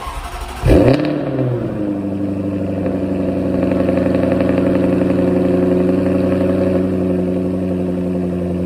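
A car engine idles with a deep, steady exhaust rumble.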